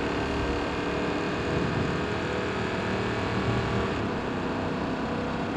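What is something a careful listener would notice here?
A pickup truck engine drones steadily as it drives along a street.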